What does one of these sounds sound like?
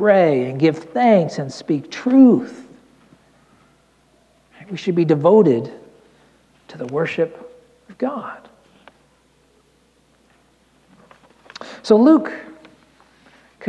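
A middle-aged man speaks with feeling through a microphone in a room with a slight echo, pausing between phrases.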